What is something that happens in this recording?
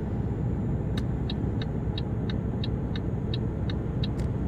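A turn signal ticks rapidly.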